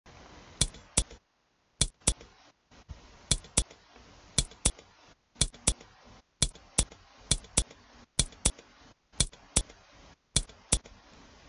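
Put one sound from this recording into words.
Game pieces click into place in quick pairs, again and again.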